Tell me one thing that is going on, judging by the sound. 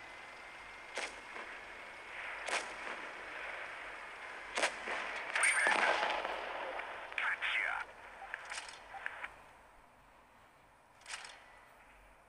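A tank cannon fires with sharp, loud bangs.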